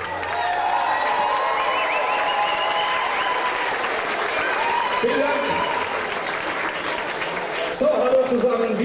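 A large brass band plays outdoors.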